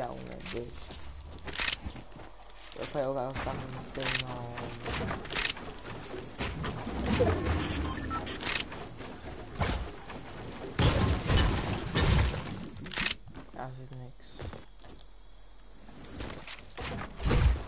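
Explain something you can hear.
Game building pieces snap into place in quick clicks.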